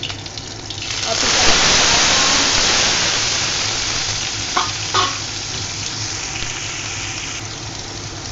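Food drops into hot oil with a sudden loud hiss that slowly settles.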